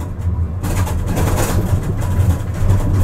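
A tram's wheels screech on the rails through a bend.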